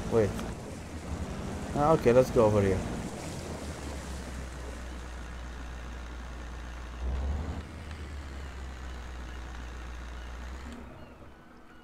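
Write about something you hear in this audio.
A boat motor hums steadily, then cuts off.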